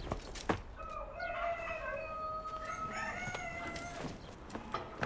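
An older man speaks sharply.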